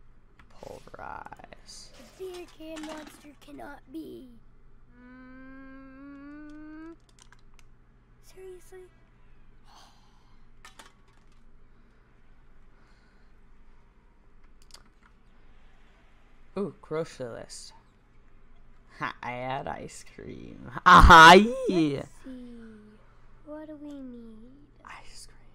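A young boy speaks calmly and quietly, close by.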